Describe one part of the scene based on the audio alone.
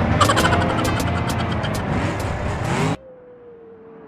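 Metal crunches and clatters as a car crashes.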